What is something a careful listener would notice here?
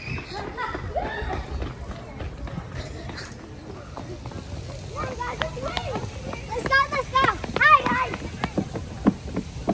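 Children's footsteps patter quickly on pavement.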